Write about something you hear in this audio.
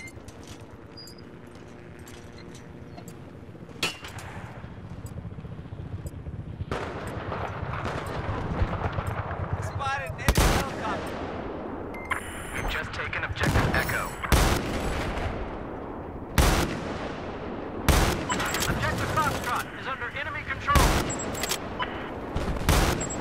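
Distant gunfire and explosions rumble on a battlefield.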